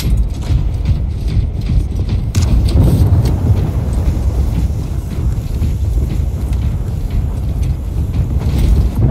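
Heavy armoured footsteps thud steadily.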